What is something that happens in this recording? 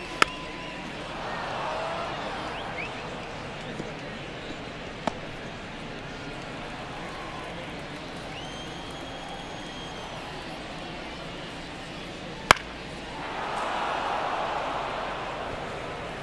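A crowd briefly swells with cheering.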